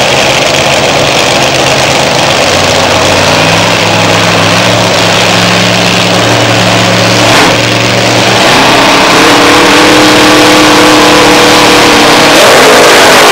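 Nitro-fuelled dragster engines rumble harshly at idle.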